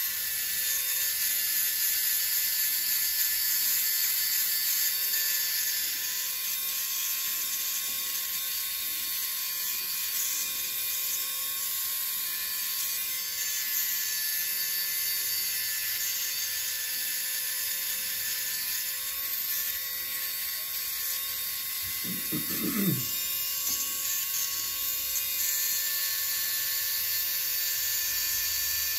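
An electric nail drill whirs steadily as it grinds a toenail.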